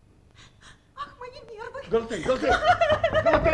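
A woman sings loudly on a stage, her voice ringing in a large hall.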